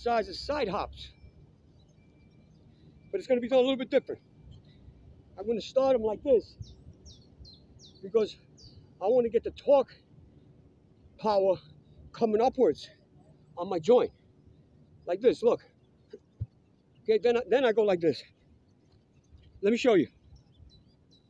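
An elderly man speaks in short bursts, close by, outdoors.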